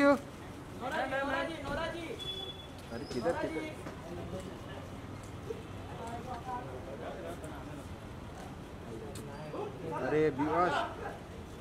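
High heels click on concrete.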